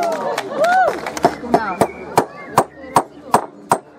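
Wooden tools tap sharply on a table.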